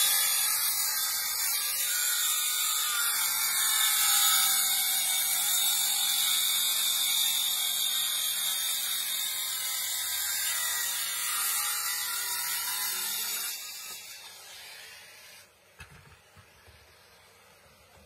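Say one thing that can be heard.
A vacuum hose hums steadily as it sucks up sawdust.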